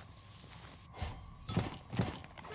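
A bright chime rings out as an item is picked up.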